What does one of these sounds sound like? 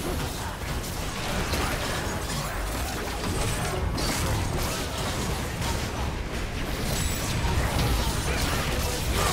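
Magic blasts and spell effects crackle and whoosh in a busy video game battle.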